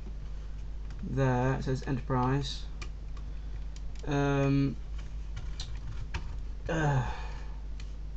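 Plastic creaks and rattles softly as a toy is handled.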